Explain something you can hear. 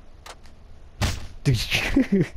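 A fist strikes a man's face with a smack.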